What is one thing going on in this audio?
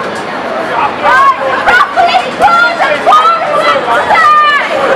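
Young people in a crowd shout and call out excitedly.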